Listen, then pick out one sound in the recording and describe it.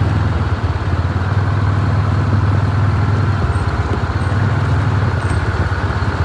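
Tyres crunch on gravel.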